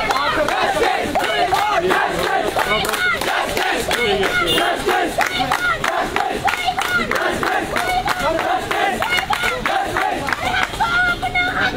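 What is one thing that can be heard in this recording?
A crowd claps hands in rhythm.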